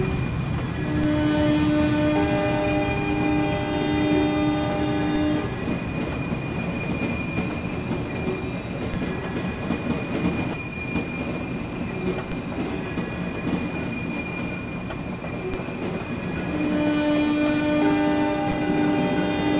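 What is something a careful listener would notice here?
A train horn sounds loudly.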